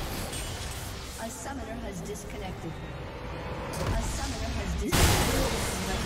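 Magic blasts and explosions crackle and boom.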